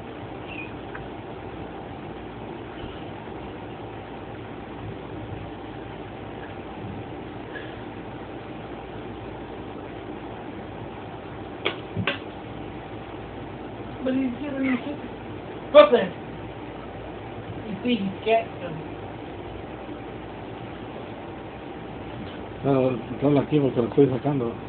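Two cats scuffle and paw at each other on a hard floor.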